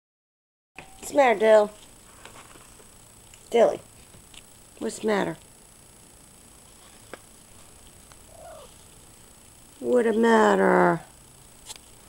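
A cat meows loudly up close.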